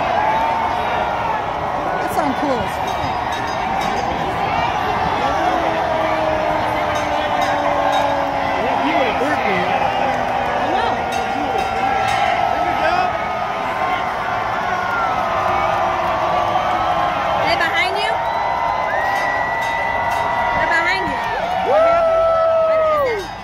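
A large crowd cheers and whistles loudly outdoors.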